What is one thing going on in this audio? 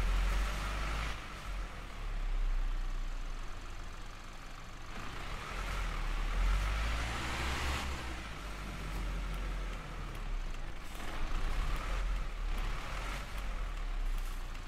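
A bus engine hums and rumbles steadily, rising and falling as it drives.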